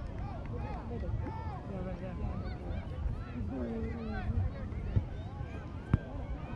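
Several people talk and chatter nearby outdoors.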